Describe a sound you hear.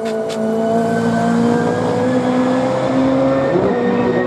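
A GT race car's high-revving engine roars as the car accelerates away through a bend.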